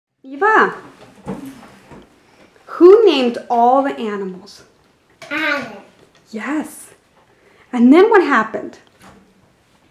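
A young girl speaks nearby in short, lively bursts.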